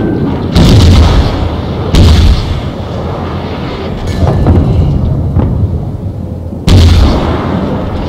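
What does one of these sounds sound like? Shells explode on a distant warship with dull thuds.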